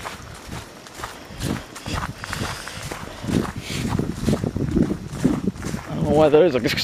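Footsteps crunch through dry leaves on a gravel path.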